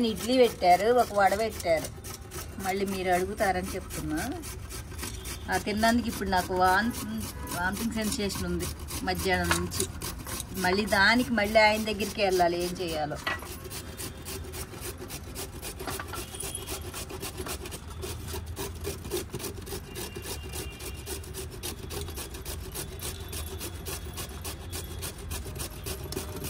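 A carrot is grated against a metal grater with a quick, rasping scrape.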